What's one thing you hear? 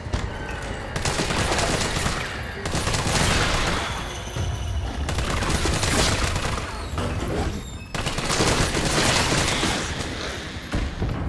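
Rapid gunfire bursts loudly, echoing in a closed space.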